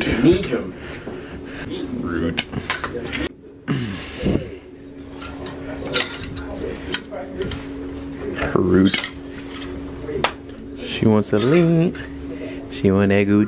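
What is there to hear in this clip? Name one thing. Clothes rustle as they are pushed aside.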